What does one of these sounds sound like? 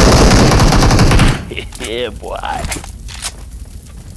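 A man laughs loudly and heartily close to a microphone.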